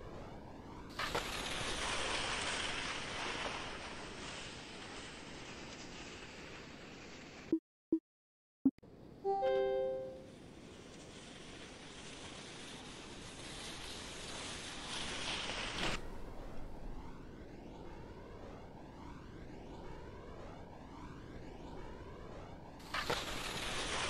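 Skis thump down onto snow on landing.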